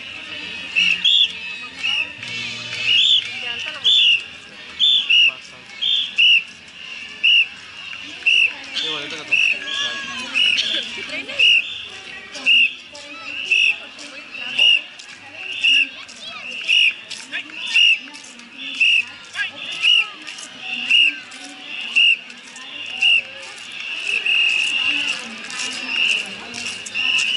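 A crowd of spectators chatters along a street outdoors.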